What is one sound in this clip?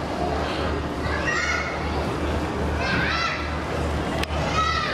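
Children's voices call out among the crowd.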